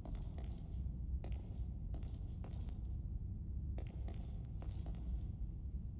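Footsteps shuffle softly on a creaking floor.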